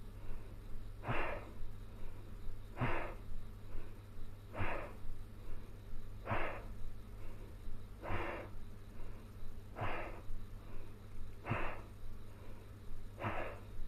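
A man breathes out hard in short, sharp bursts at a steady pace, close by.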